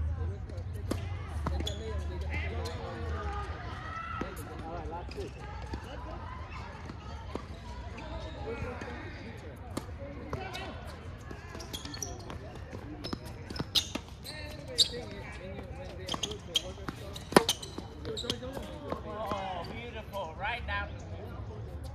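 Tennis balls pop off rackets in sharp hits.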